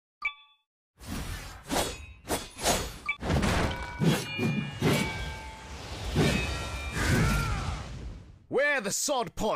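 Metal armour clanks.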